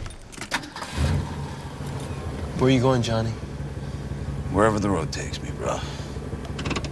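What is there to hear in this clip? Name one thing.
A car engine starts and idles with a low steady rumble.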